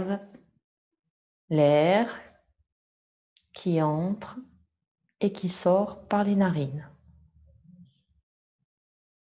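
A middle-aged woman speaks calmly and slowly, close to a microphone, with long pauses.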